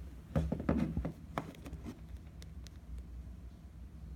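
A plastic toy figure bumps and scrapes against a wooden tabletop.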